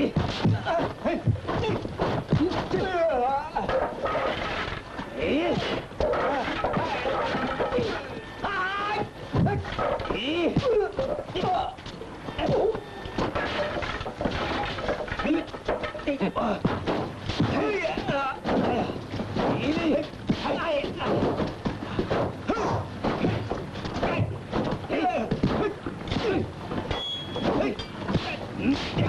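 A young man cries out and grunts while fighting.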